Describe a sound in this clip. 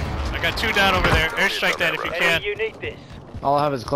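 Rapid gunshots crack close by.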